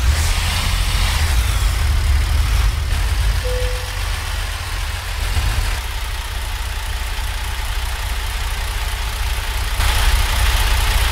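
A truck's diesel engine idles with a deep, steady rumble.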